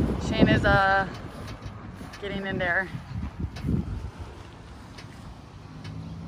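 Bare feet thud on a boat's fibreglass deck.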